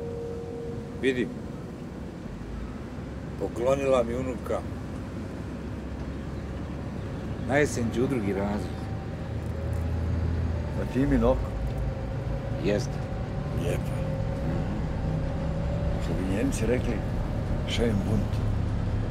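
An elderly man talks calmly at close range.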